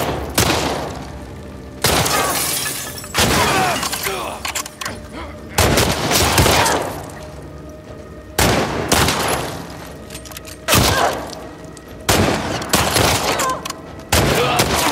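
Gunshots ring out loudly again and again, each echoing briefly.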